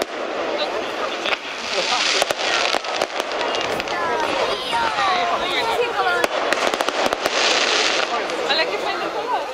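Fireworks crackle and bang loudly outdoors.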